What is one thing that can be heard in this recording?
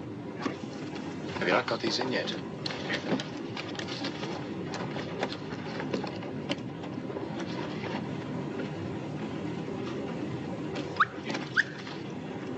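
Papers rustle and shuffle.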